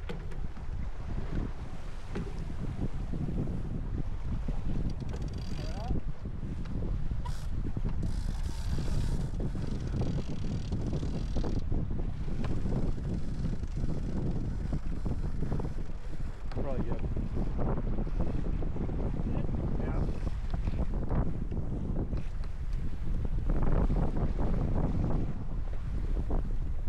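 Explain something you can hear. Water splashes and churns against a moving boat's hull.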